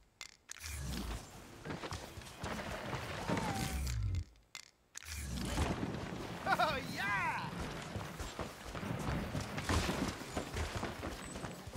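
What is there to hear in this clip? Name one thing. Footsteps thud on dirt and wooden boards.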